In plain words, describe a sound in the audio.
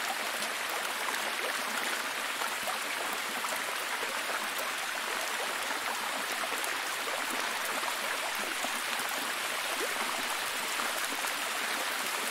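A waterfall rushes and splashes steadily over rocks.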